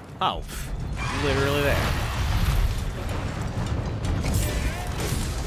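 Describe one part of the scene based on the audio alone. A large monster roars.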